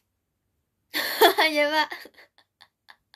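A young girl laughs loudly close by.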